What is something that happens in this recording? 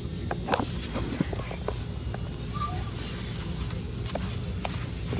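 Small kittens mew in short, high squeaks close by.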